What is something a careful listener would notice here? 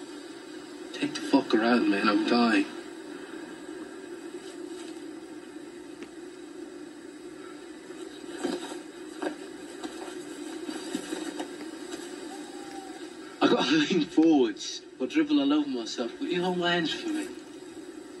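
A man speaks in a low, quiet voice through a television speaker.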